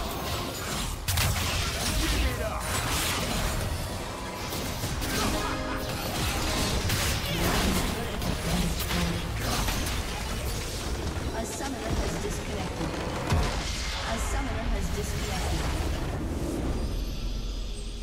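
Video game battle effects crackle, zap and boom rapidly.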